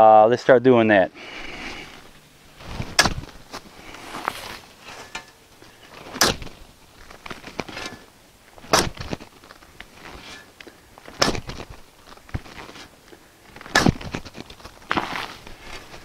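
A metal shovel digs and scrapes into soil in repeated strokes.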